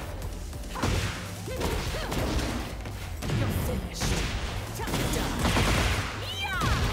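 Blows land with heavy thuds.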